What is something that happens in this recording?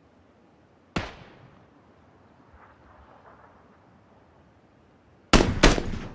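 A rifle fires loud single shots that ring out.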